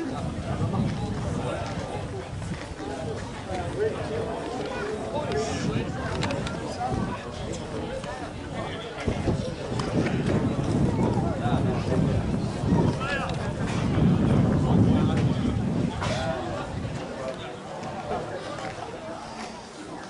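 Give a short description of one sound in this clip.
Young men shout and call to each other across an outdoor field.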